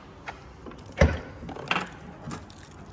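A car boot latch clicks open.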